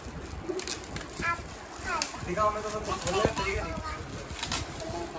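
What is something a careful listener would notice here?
Foil wrapping paper crinkles and rustles as it is torn open.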